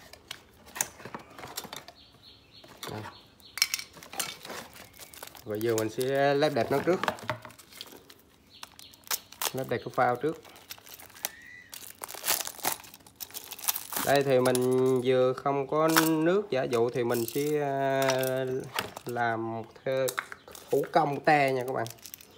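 Cardboard rustles and bumps as a box is handled.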